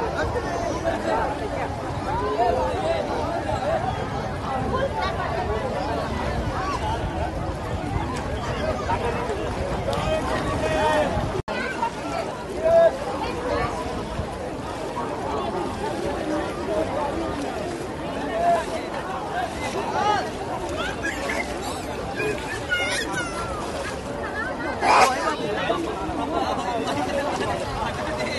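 A crowd of men and women talk and call out nearby, outdoors.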